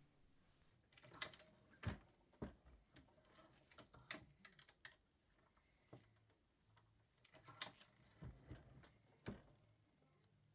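Metal parts click and clink.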